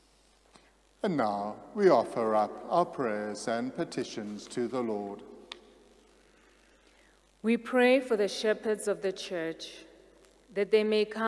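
A man sings slowly through a microphone in an echoing hall.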